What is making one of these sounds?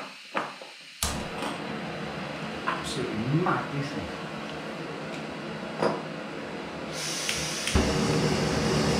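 A gas camping stove burner roars steadily.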